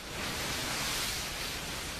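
Rough sea waves crash and churn.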